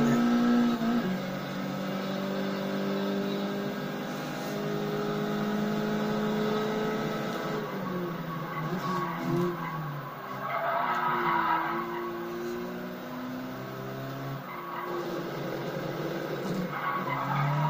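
A racing car engine roars through a loudspeaker, its pitch rising and falling as it shifts gears.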